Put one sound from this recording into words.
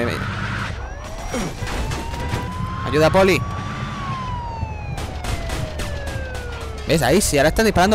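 A police siren wails and glides up and down.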